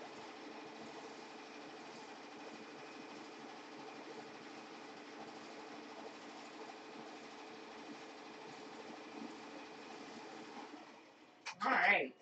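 An embroidery machine hums and whirs steadily.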